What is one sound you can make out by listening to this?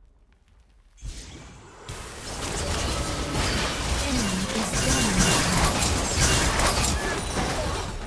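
Magical spell effects whoosh and crackle in a fast-paced battle.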